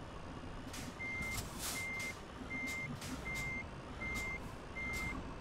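A truck's reversing alarm beeps in a steady rhythm.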